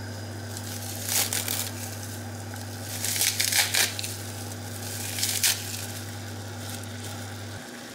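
Seaweed rustles as hands drop it into a pot.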